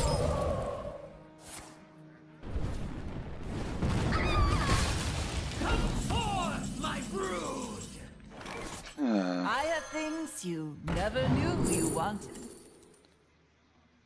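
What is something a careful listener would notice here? Game spell effects whoosh, crackle and chime.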